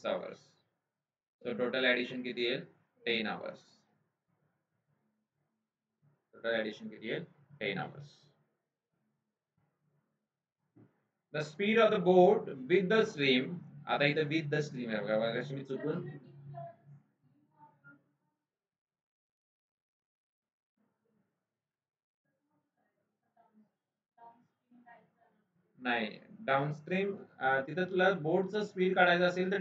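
A man speaks calmly into a close microphone, explaining with pauses.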